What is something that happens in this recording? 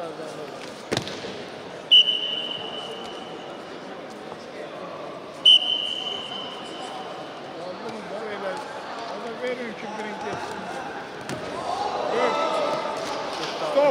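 Wrestlers' bodies thump onto a mat.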